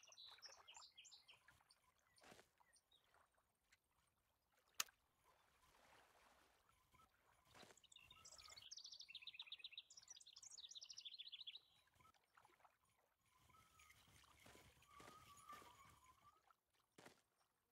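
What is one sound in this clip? A fishing reel winds with a soft whirring.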